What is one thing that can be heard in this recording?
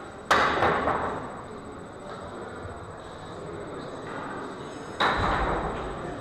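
Billiard balls clack against each other and roll across the table.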